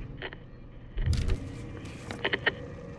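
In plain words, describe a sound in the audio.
Paper rustles as a map is unfolded.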